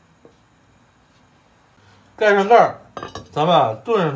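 A lid clanks onto a pot.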